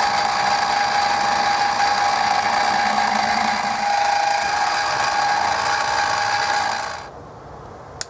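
A drill bores into metal with a steady whine.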